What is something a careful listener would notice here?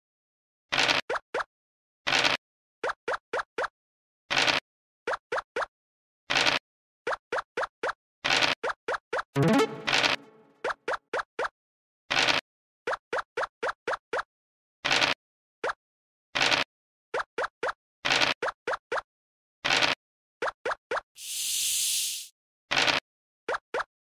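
Game pieces tap as they hop along the board.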